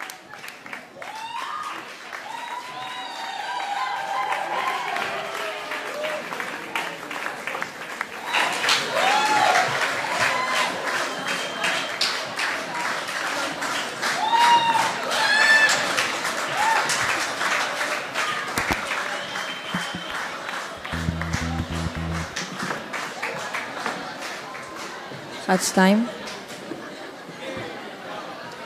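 A crowd of young people cheers and whoops loudly in an echoing hall.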